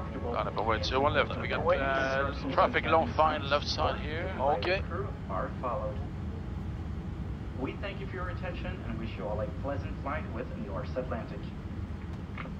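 A man speaks calmly through a headset.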